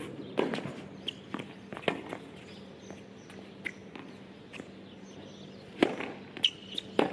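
Tennis balls are struck with rackets, popping sharply outdoors.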